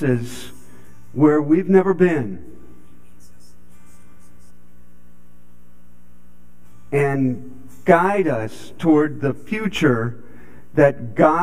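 An elderly man speaks calmly in a large room, with pauses.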